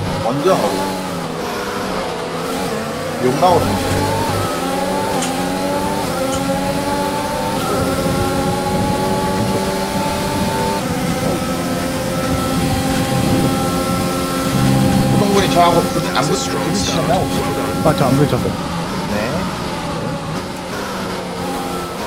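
A racing car engine whines loudly, rising in pitch as it speeds up and dropping at each gear change.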